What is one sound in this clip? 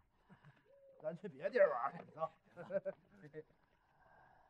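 Men talk and laugh nearby.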